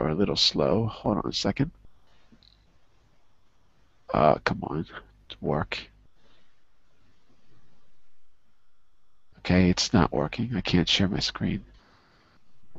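A man speaks calmly in short bursts, heard through an online call.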